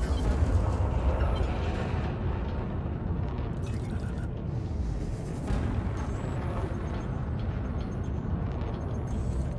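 A spaceship engine hums and rumbles steadily, with a low roar.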